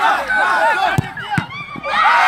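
A football thuds as it is kicked hard.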